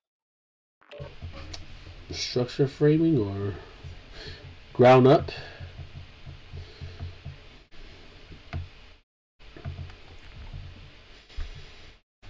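A man talks with animation into a microphone, close up.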